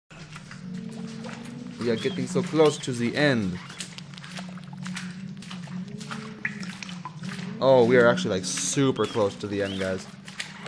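Water drips steadily into a shallow pool.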